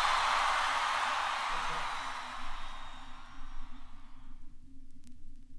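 Music plays from a vinyl record and fades away.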